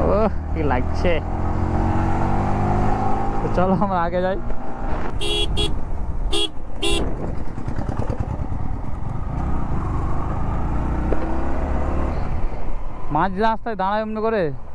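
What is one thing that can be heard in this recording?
A motorcycle engine drones steadily up close.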